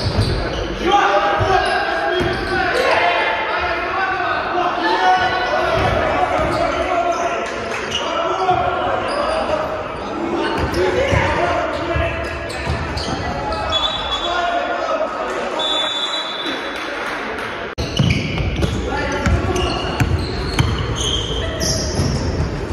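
Men shout and call out to each other across an echoing gym.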